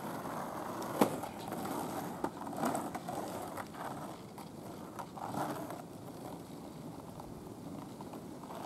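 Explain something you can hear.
Skateboard wheels roll and rumble on rough asphalt.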